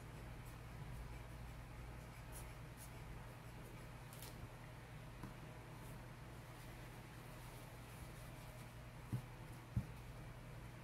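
Paper rustles softly as a hand dabs and presses on it.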